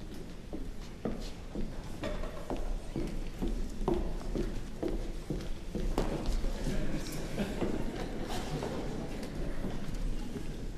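Plucked string instruments play together in an ensemble.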